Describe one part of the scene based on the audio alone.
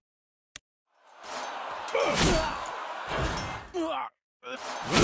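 Swords clash and armour clanks in a fight.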